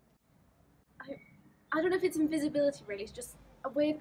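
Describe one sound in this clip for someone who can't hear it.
A young woman laughs while speaking.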